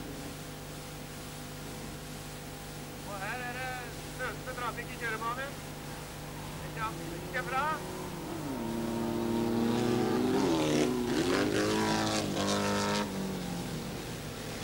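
Small race car engines roar and rev on a dirt track.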